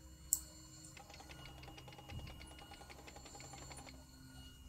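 A key turns in a lock with a fast ratcheting click.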